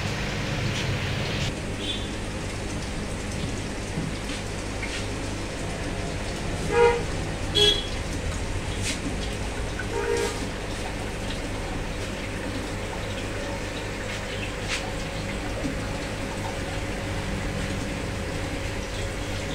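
Air bubbles gurgle steadily in a water tank.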